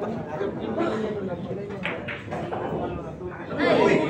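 Billiard balls click together sharply.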